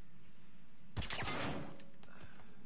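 A silenced pistol fires a single muffled shot.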